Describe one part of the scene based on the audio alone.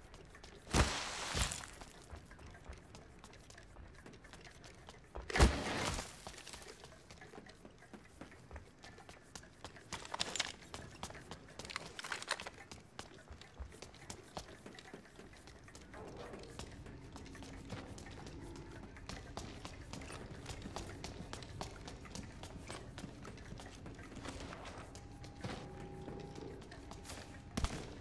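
Footsteps patter quickly on hard floors and metal stairs.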